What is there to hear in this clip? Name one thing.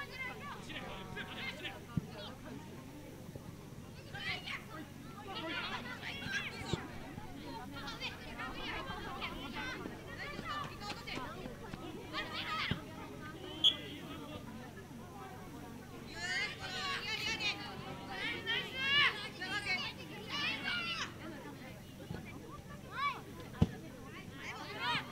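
Children shout and call out to each other across an open field.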